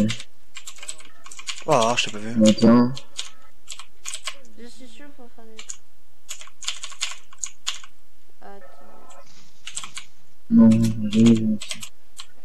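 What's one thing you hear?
Keys on a mechanical keyboard click and clatter in quick bursts.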